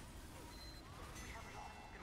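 A rocket explodes in a video game.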